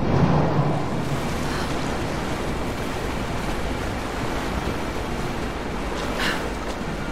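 Water sloshes and splashes as someone swims.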